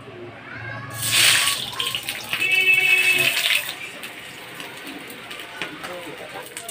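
Eggs sizzle in hot oil.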